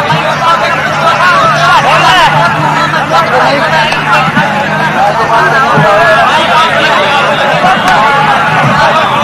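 A crowd of men shouts and cheers outdoors.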